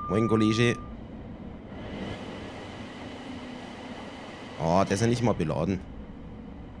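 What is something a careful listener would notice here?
A freight train rushes past close by with a rushing roar.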